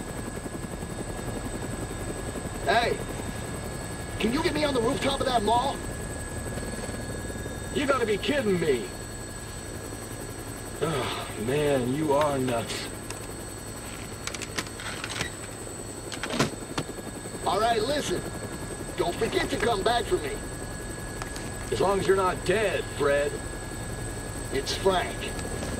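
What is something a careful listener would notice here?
A helicopter engine and rotor drone throughout.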